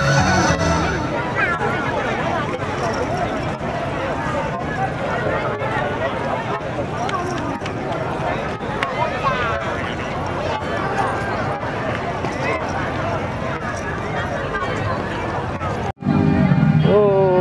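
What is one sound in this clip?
A crowd of people chatters and calls out all around outdoors.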